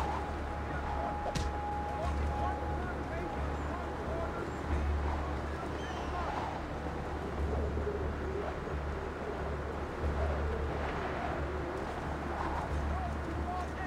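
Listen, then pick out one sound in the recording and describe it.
Hands and feet scrape on a stone wall while climbing.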